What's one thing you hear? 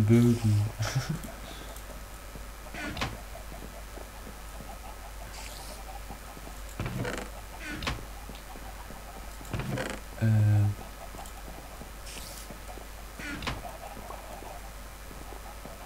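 A wooden chest lid creaks shut.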